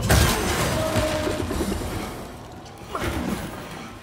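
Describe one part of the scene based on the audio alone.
Wooden planks smash and clatter apart.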